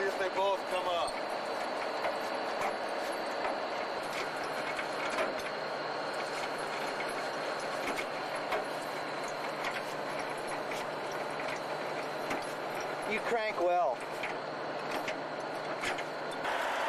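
A metal crank handle clanks and rattles as it turns.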